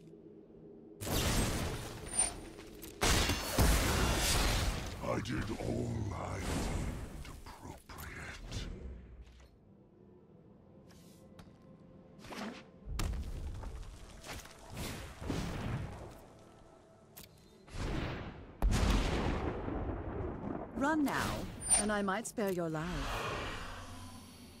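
Magical game sound effects whoosh and shimmer in bursts.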